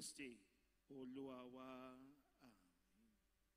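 A man sings a drawn-out line through a microphone.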